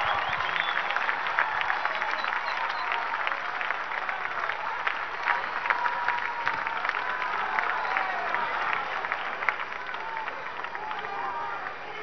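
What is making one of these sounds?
A large crowd claps and cheers.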